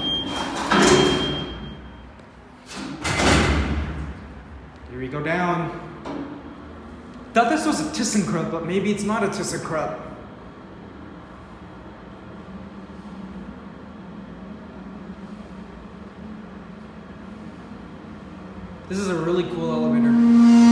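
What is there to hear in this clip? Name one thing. A large car elevator hums as it moves.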